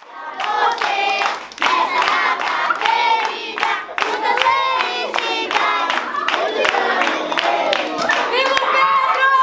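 A young girl claps her hands.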